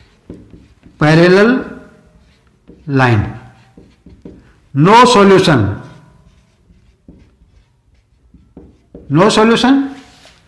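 An older man speaks clearly and loudly in short bursts with pauses between them, close by.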